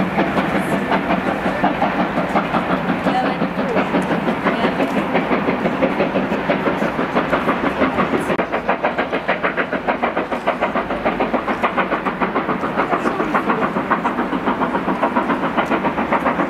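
A train chugs away along the rails with a steady rhythmic beat.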